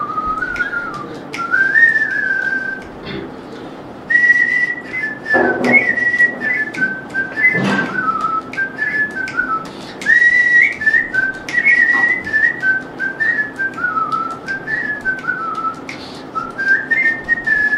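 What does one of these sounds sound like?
A man whistles a lively melody close to a microphone.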